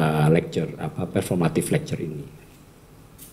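An older man speaks calmly through a headset microphone and loudspeaker.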